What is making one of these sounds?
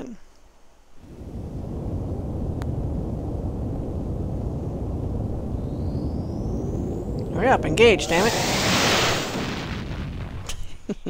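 A spaceship's engines rumble steadily.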